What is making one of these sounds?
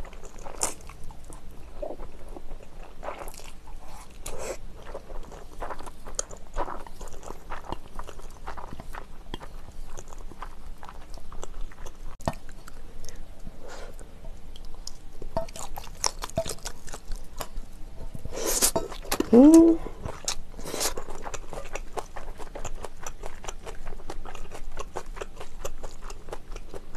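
A young woman chews food with moist, sticky sounds close to the microphone.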